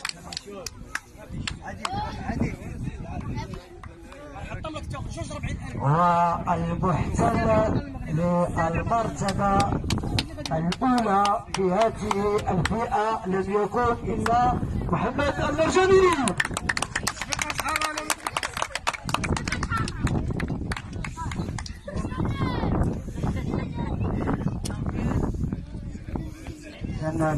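A crowd of men, women and children chatter and call out nearby outdoors.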